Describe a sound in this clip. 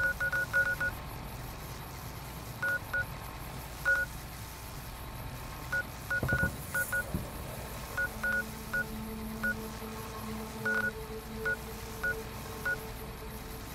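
Short electronic beeps tick in quick bursts.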